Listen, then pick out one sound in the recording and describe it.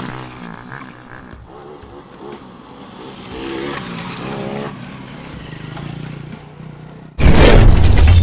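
Motorcycle engines hum as the bikes ride past.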